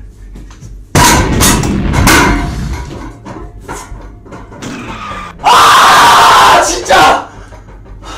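A young man shouts in frustration close to a microphone.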